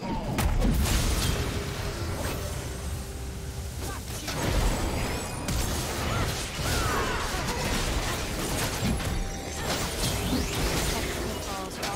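Magic spells burst and crackle in a video game battle.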